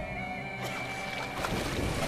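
Water splashes heavily.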